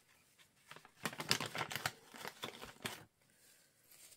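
A plastic wipes packet crinkles as a wipe is pulled out.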